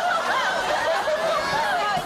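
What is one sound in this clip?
Young women laugh together.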